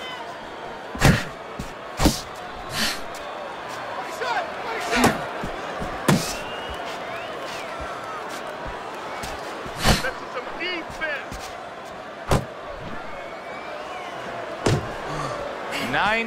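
Boxing gloves thud against a body in sharp blows.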